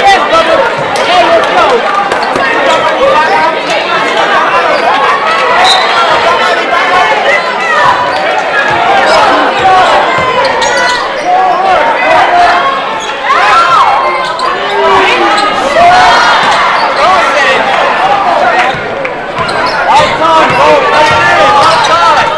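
A crowd in a large echoing gym chatters and cheers throughout.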